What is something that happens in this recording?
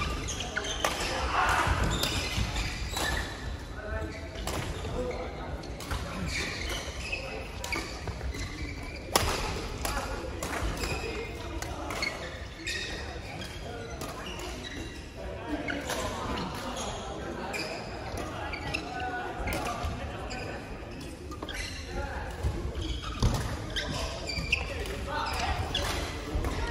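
Many players' voices and calls echo through a large hall.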